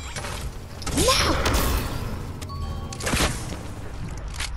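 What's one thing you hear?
Rockets explode with loud booms.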